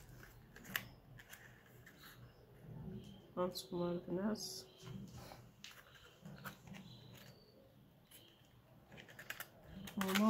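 A thin plastic case crinkles and clicks as it is handled.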